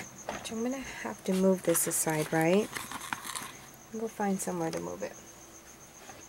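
A sheet of paper rustles as it is lifted away.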